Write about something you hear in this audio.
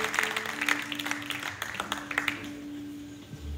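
An acoustic guitar is strummed through loudspeakers, with chords that ring out and stop.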